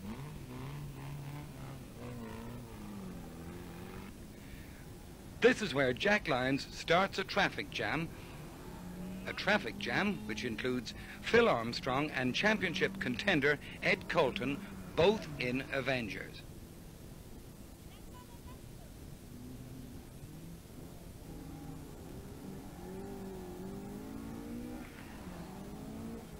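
A rally car engine revs hard and roars past.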